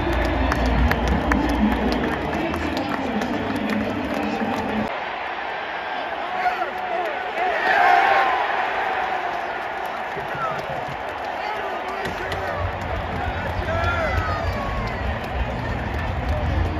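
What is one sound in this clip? A huge stadium crowd roars and cheers loudly throughout.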